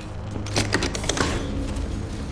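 A metal switch clicks and rattles as it is flipped.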